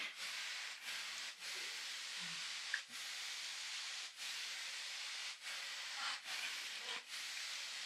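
Wooden chopsticks lightly tap and lift noodles.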